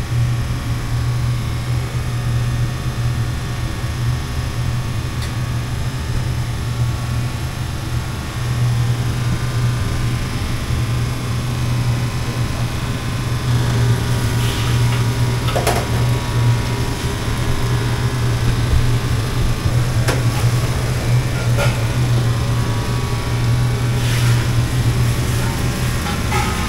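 An exhaust fan hums loudly and steadily.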